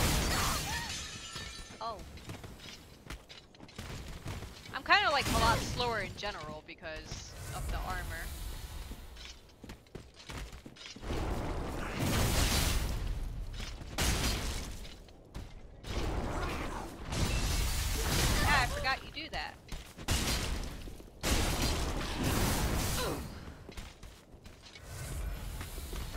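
A young woman talks into a close microphone with animation.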